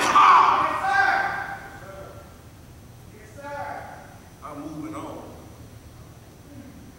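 A man preaches with emphasis through a microphone in an echoing hall.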